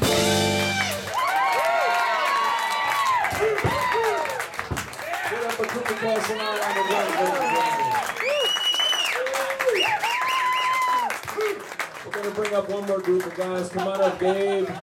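A boy plays a drum kit with sticks, tapping cymbals and drums.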